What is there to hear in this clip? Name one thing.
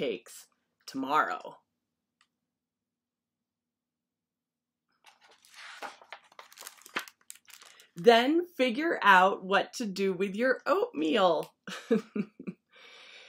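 A woman reads aloud with animation, close to a computer microphone.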